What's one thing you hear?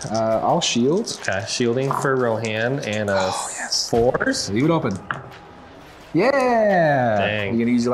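Dice rattle and clatter into a tray.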